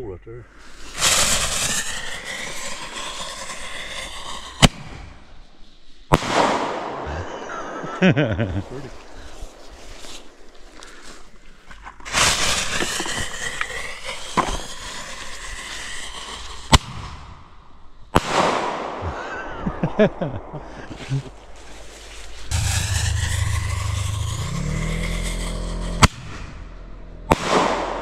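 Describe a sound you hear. Fireworks hiss and whoosh as they shoot sparks into the air.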